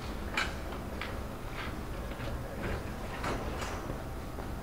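Footsteps tap on a wooden stage.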